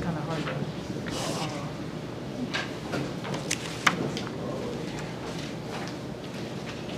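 A man speaks calmly in a room with a slight echo.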